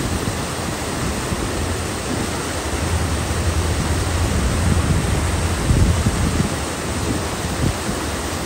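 A flag flaps in the wind.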